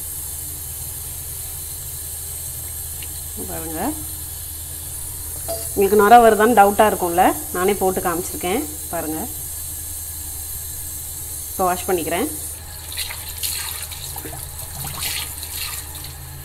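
Wet, soapy hands rub and squelch together.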